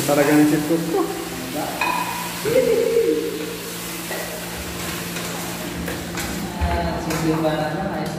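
A metal spoon scrapes against a metal pot.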